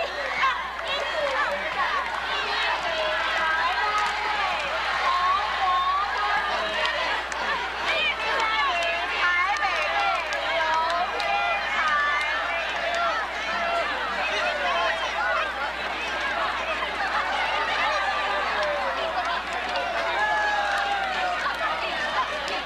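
A large crowd of young people chatters and shouts outdoors.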